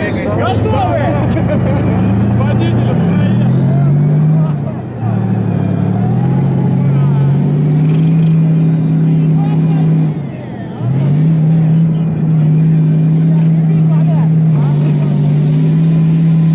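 A tank engine roars steadily and changes pitch now and then.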